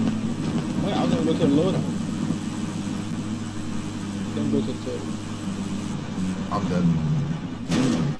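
A vehicle engine hums steadily as it drives.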